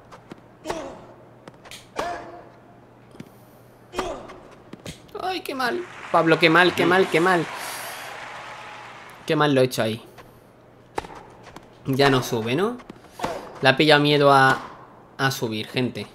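A tennis ball is struck sharply with a racket, back and forth.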